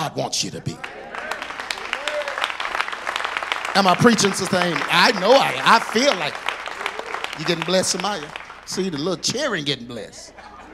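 An audience cheers and shouts in a large room.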